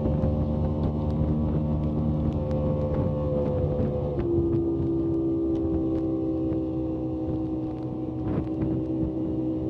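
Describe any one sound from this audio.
Water splashes and slaps against a boat's hull.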